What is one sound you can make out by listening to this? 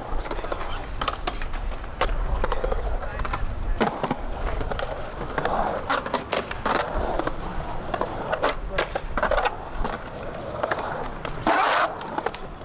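Skateboard wheels roll and rumble on concrete.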